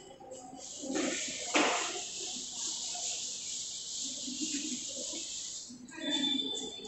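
A duster rubs across a chalkboard, wiping it clean.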